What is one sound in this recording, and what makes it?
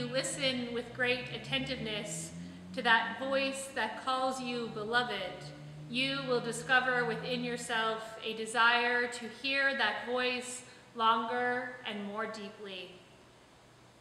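A young woman sings close to a microphone in an echoing hall.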